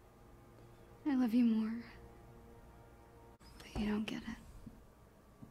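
A teenage girl speaks softly.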